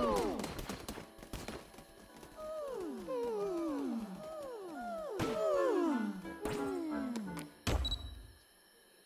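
Bright game chimes tumble downward in pitch.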